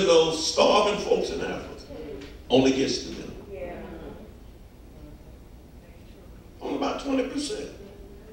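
A man preaches with passion into a microphone, his voice echoing through a large hall.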